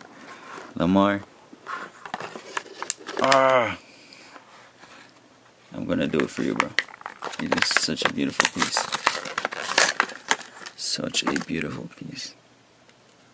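Stiff card packaging crinkles and rustles as it is handled.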